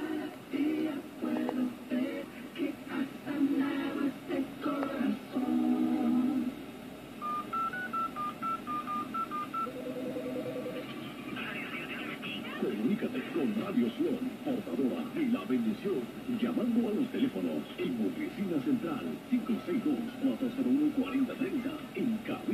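A radio broadcast plays through a loudspeaker.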